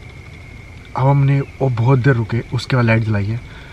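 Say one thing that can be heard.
A young man speaks close by, calmly.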